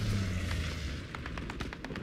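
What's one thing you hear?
An explosion booms and rumbles close by.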